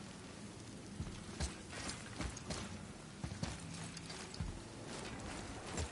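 Heavy footsteps thud and crunch on stone and gravel.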